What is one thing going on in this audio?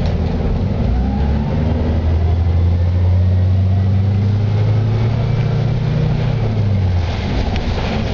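A bus engine revs up, rising in pitch.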